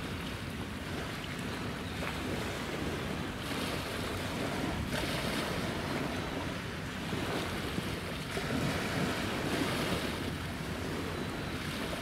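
Water swishes along the hull of a passing ship.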